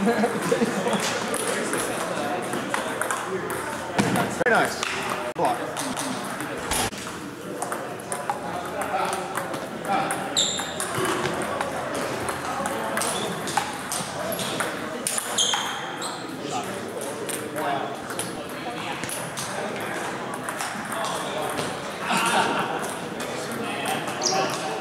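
A table tennis ball clicks back and forth on paddles and a table.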